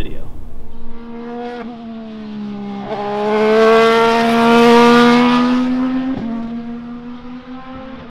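A race car engine roars as the car speeds past, rising and fading.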